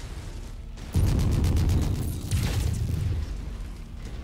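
Heavy guns fire and shells explode with loud, deep booms.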